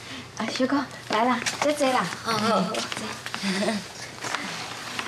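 A woman speaks warmly and invitingly nearby.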